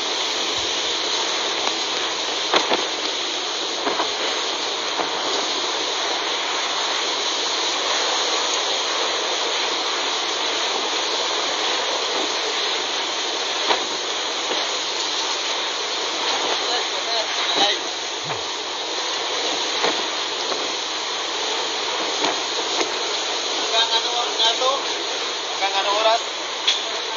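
Strong wind roars steadily outdoors.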